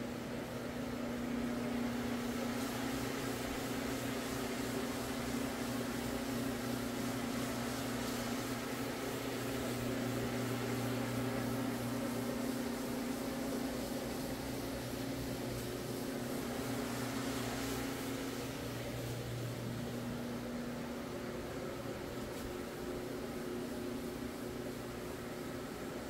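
A floor machine hums steadily as its spinning pad scrubs carpet.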